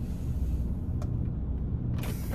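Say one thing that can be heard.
A switch clicks on a dashboard.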